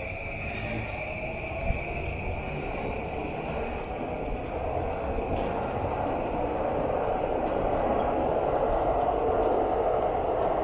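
A steady murmur of city traffic hums in the distance.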